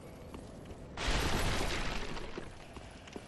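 Wooden crates smash and splinter apart.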